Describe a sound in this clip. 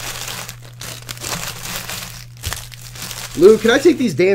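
Card packs rustle and shuffle as hands move them.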